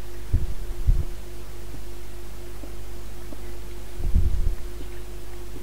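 A pickaxe strikes and chips at stone in short bursts.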